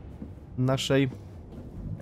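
Footsteps run across a hard metal floor.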